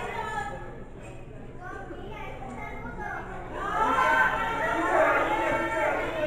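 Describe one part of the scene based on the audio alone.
A crowd of spectators shouts and cheers nearby, growing louder.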